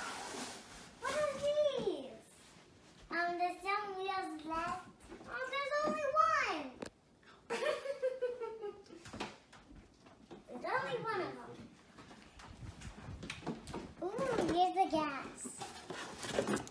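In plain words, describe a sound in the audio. Young girls talk and exclaim excitedly up close.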